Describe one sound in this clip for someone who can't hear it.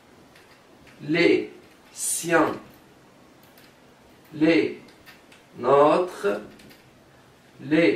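A young man speaks calmly and clearly, close by, in short phrases.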